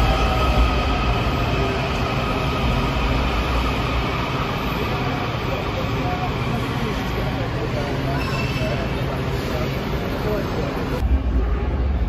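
A subway train rolls slowly along the platform with a steady metallic rumble, in a large echoing hall.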